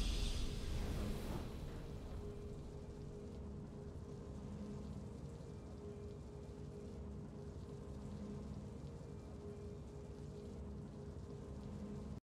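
Triumphant video game music plays softly and steadily.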